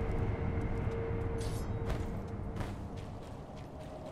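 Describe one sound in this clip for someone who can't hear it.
Water splashes under running feet.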